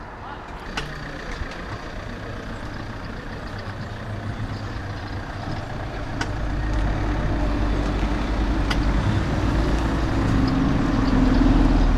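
Bicycle tyres roll over rough asphalt.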